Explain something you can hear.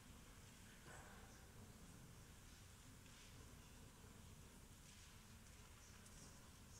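A man chants softly in a large echoing hall.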